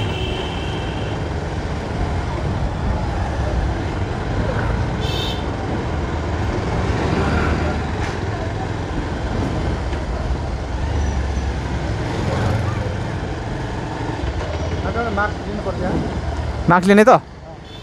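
Motorbike engines hum and pass by along a street.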